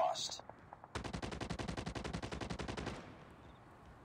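A rifle fires rapid bursts of gunfire.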